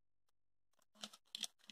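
Paper crinkles as a small cube is unwrapped.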